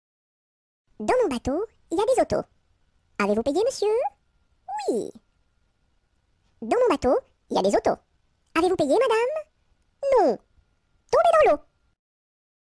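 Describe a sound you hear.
A high-pitched cartoon voice speaks in short, bouncy phrases with pauses between them.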